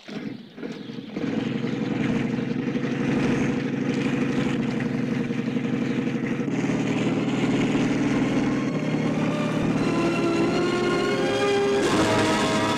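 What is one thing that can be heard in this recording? A helicopter engine drones steadily as its rotor turns.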